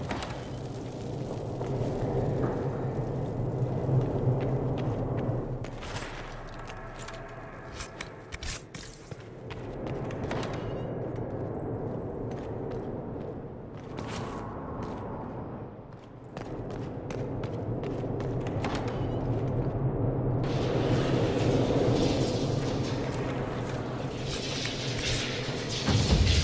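Footsteps hurry across a hard stone floor.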